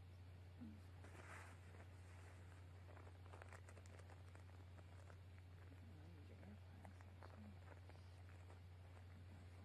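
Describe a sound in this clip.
Cloth rustles close by.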